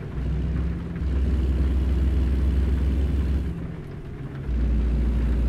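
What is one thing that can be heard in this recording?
A large truck roars past close by.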